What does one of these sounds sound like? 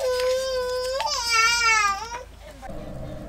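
A metal stove door creaks on its hinge.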